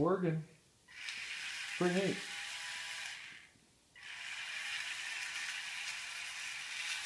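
A small wheeled robot's electric motors whir as it moves on a tile floor.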